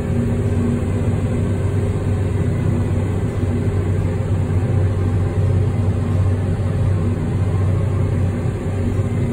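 A harvester's engine drones steadily and loudly.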